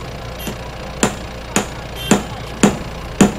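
A hammer strikes metal in quick blows.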